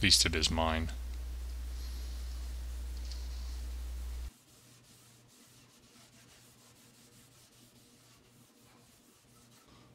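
A gloved hand wipes a rag across a wooden tabletop.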